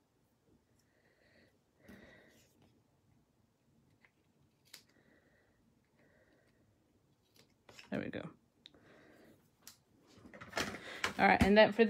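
Paper rustles softly as it is folded and handled.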